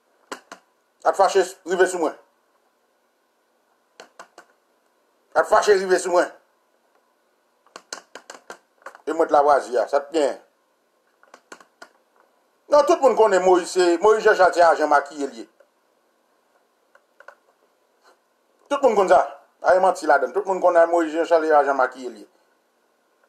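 A man speaks close by in short bursts, with animation.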